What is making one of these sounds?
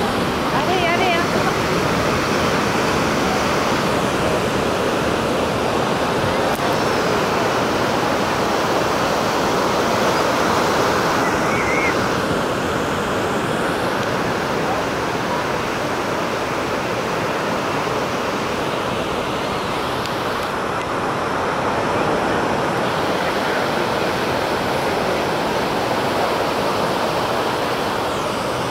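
Waves crash and roar steadily on the shore, heard outdoors.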